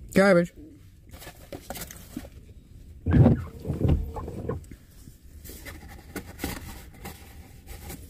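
Cardboard packaging rustles and crinkles.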